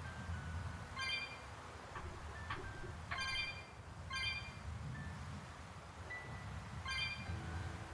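Bright chimes ring out now and then as items are picked up.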